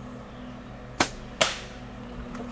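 A bowstring snaps sharply as an arrow is shot.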